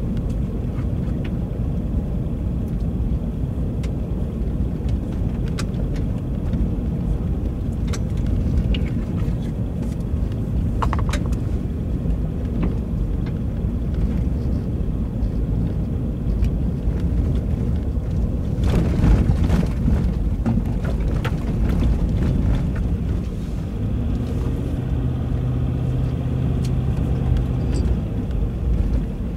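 Tyres crunch and rattle over a gravel road.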